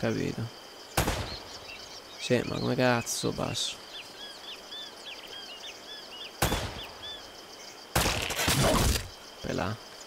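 Pistol shots ring out one at a time.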